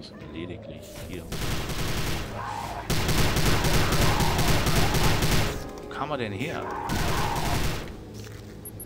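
A heavy gun fires a long, roaring burst.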